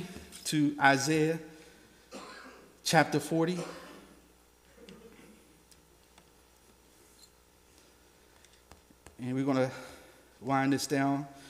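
A man speaks slowly and with feeling through a microphone in a room with a slight echo, pausing between phrases.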